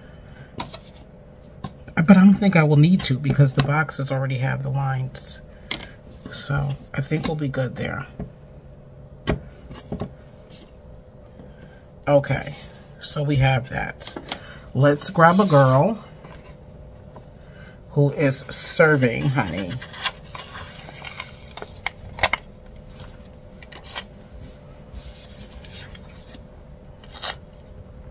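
Sheets of paper rustle as hands handle them.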